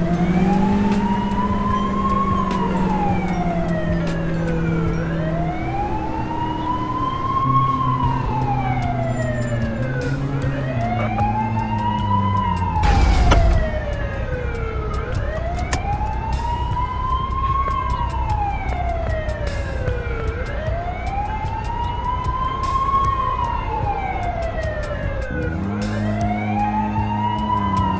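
A police siren wails, rising and falling in slow, steady sweeps.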